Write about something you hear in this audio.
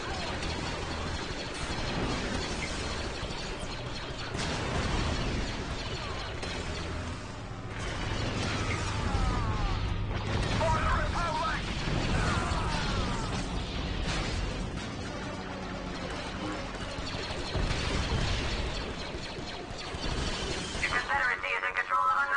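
Laser blasts fire in quick bursts.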